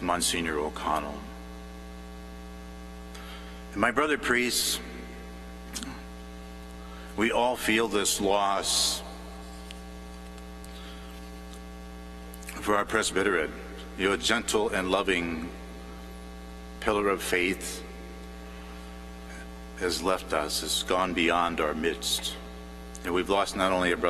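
A man speaks slowly through a loudspeaker in a large echoing hall, pausing between phrases.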